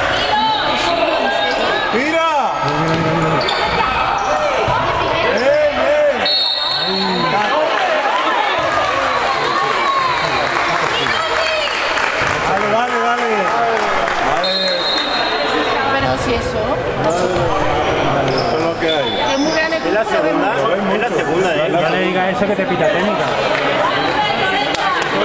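A crowd of spectators shouts and cheers loudly in an echoing indoor hall.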